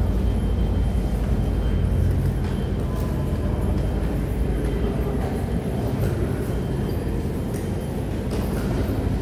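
A suitcase's wheels roll along the floor.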